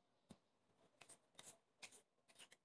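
A knife chops through lettuce on a wooden board.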